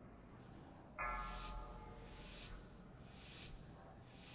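A short chime sounds for a countdown.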